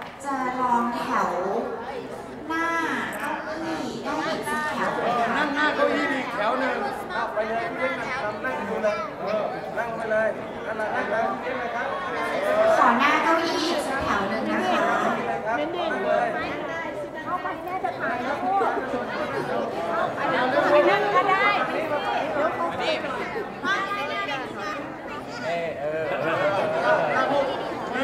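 A large crowd of children and adults chatters loudly in a big room.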